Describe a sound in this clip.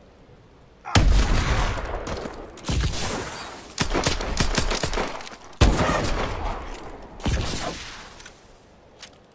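A sniper rifle fires loud, booming shots that echo away.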